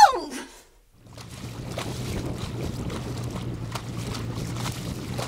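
Choppy water laps and splashes outdoors in wind.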